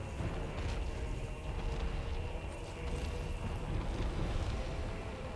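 A huge creature's massive body thuds and crashes.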